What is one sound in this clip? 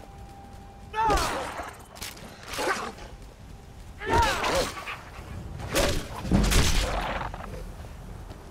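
A heavy axe swings and strikes with loud thuds.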